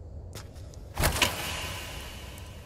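A fridge door swings open with a sudden loud burst.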